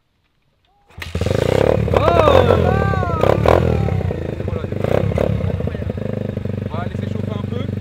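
A small motorbike engine starts up loudly and revs.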